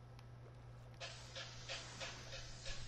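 Oars splash rhythmically through water.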